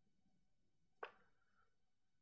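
A glass bottle is set down on a stone stand with a short clink.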